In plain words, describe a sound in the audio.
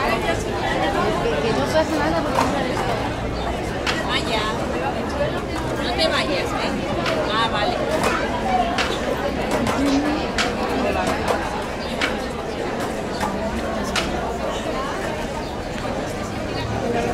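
A crowd of women chants and talks loudly outdoors on a busy street.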